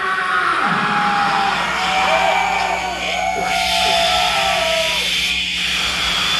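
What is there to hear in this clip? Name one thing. Loud harsh electronic noise roars and screeches with sweeping, squealing tones.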